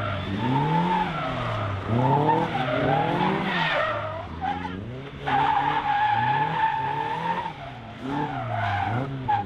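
A small car's engine revs up and down hard, close by.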